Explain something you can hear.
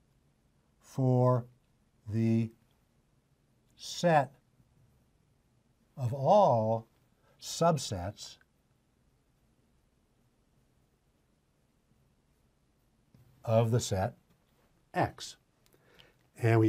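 An elderly man speaks calmly and slowly, with long pauses, close to a microphone.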